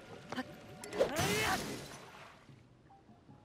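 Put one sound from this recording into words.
A blade shatters with a crackling burst.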